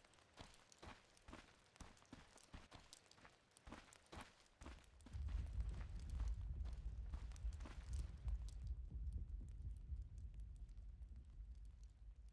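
Footsteps of a game character patter at a steady pace.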